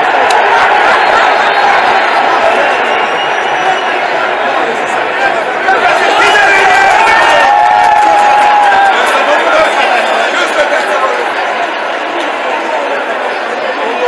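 A large stadium crowd makes a loud, echoing noise.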